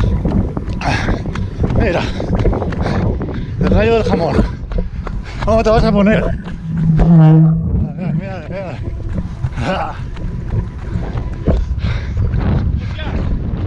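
A man breathes heavily and pants close by.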